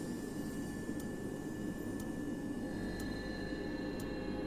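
A soft tick sounds once a second, like a countdown.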